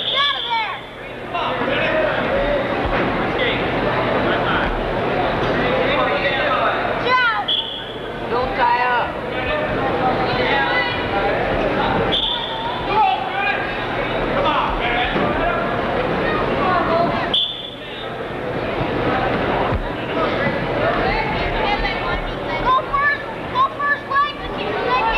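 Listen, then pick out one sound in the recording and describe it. Shoes squeak on a mat.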